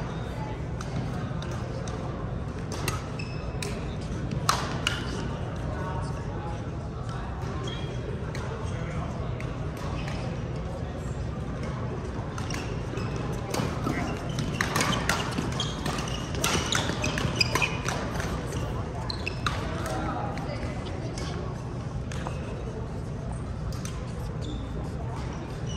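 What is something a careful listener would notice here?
Shuttlecocks are struck sharply by rackets, echoing in a large hall.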